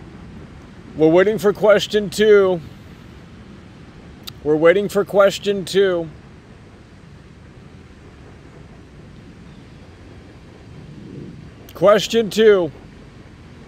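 A man speaks in short, animated bursts into a microphone.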